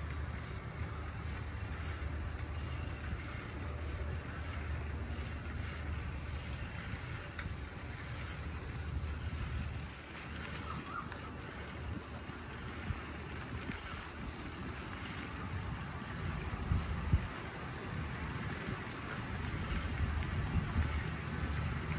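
Wind rumbles outdoors and rustles through palm leaves.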